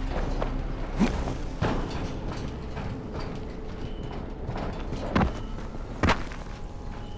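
Footsteps thud and clang on a metal roof.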